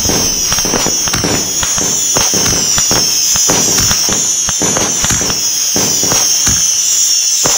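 Fireworks fizz and sparkle overhead.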